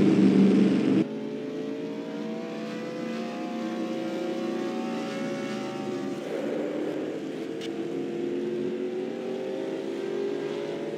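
Several race car engines drone together, rising slowly in pitch.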